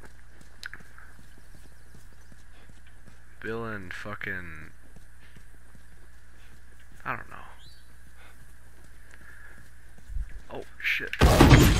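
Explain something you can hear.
Footsteps walk on hard ground.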